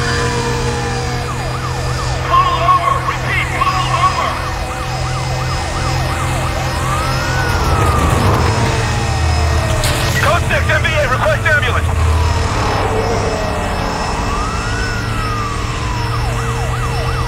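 A police siren wails and rises and falls close by.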